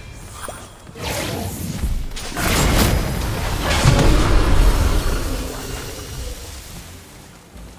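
Wind rushes past loudly, then slowly fades.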